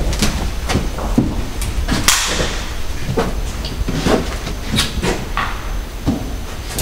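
Footsteps thud on a hard floor at a quick pace.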